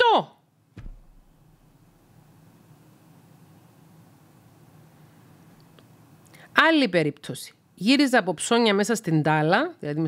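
A middle-aged woman speaks calmly and closely into a microphone.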